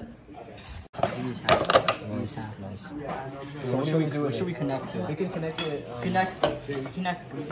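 Teenage boys talk casually close by.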